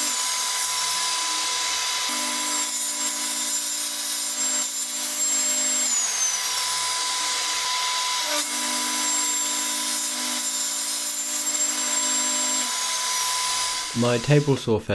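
A table saw runs with a steady high whine.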